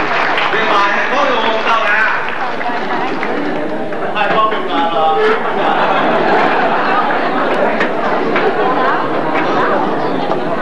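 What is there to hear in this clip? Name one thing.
Young men and women chatter and laugh excitedly nearby.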